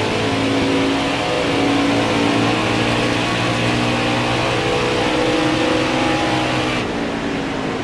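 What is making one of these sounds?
A racing truck engine roars steadily at high speed.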